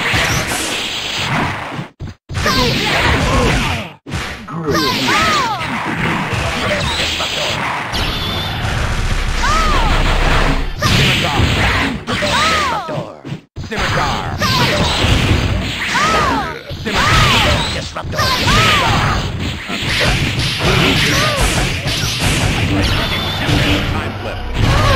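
Electronic game music plays throughout.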